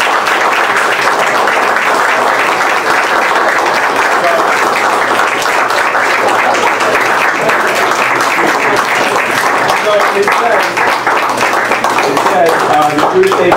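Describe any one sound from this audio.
A room full of people applauds.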